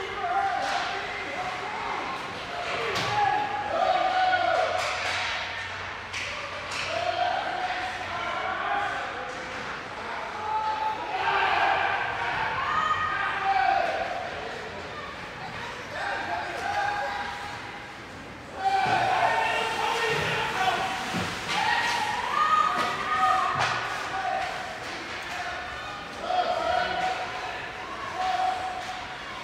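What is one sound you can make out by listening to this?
Spectators shout and cheer nearby in a large echoing rink.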